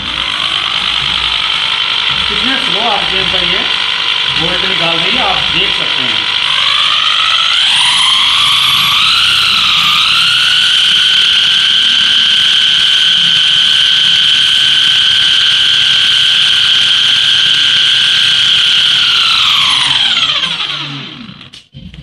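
An electric motor whines steadily, speeds up, then winds down to a stop.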